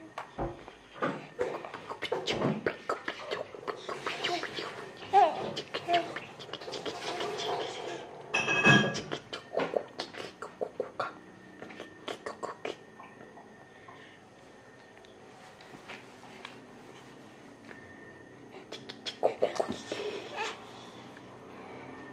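A baby girl laughs and squeals close by.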